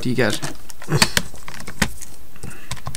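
A plastic calculator is set down on a desk with a knock.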